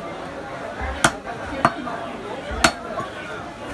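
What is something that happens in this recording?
A heavy cleaver chops down sharply on a wooden block.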